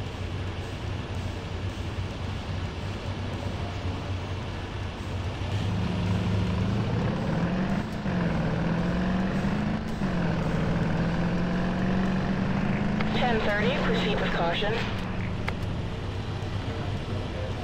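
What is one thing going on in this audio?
A car engine hums steadily, rising in pitch as it speeds up.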